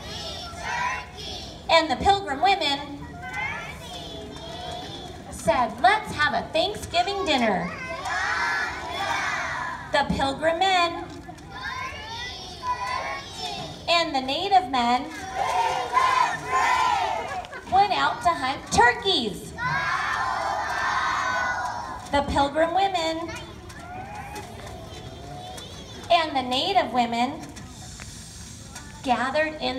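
A large choir of children sings together outdoors.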